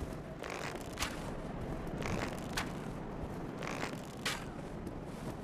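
Arrows strike with sharp thuds.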